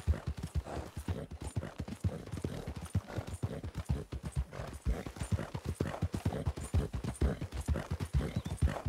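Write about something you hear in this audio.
Horse hooves pound rhythmically on a dirt trail at a gallop.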